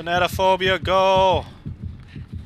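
A man shouts into a headset microphone.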